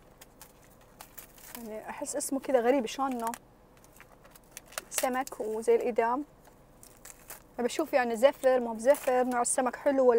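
Plastic wrapping rustles and crinkles in a woman's hands.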